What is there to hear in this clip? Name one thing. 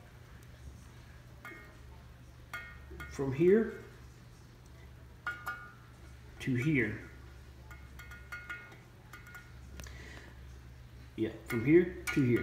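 A metal ruler clicks and taps against metal.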